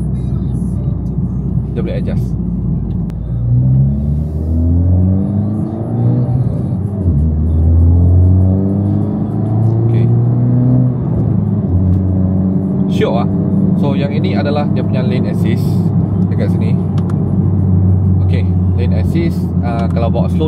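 A car engine revs hard, climbing in pitch through several gear changes.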